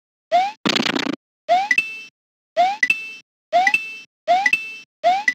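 A video game character jumps again and again with a short rising boing.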